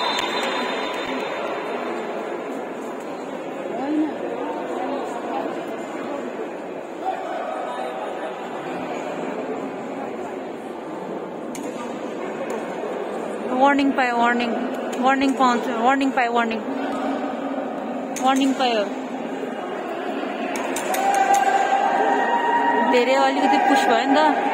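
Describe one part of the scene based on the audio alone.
A crowd of spectators chatters steadily in a large echoing hall.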